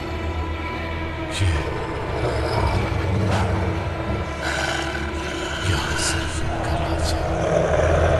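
A man speaks close by in a low, strained voice.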